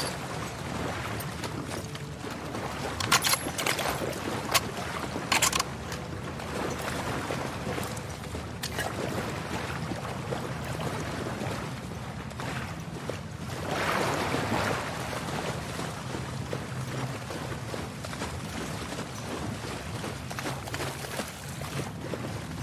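Footsteps slosh and splash through shallow water.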